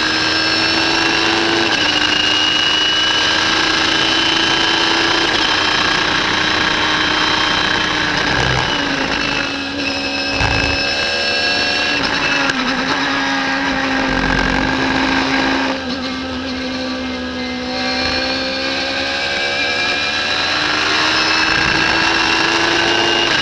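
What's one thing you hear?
Wind rushes loudly past an open cockpit.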